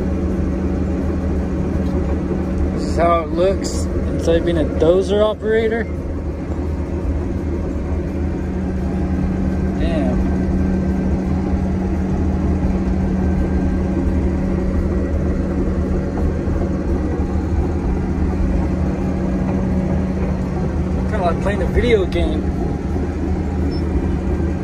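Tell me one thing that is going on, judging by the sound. Steel tracks clank and rattle as the bulldozer moves.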